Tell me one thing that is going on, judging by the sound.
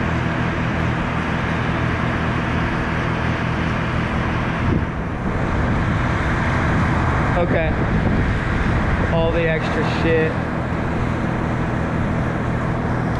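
Wind rushes steadily outdoors.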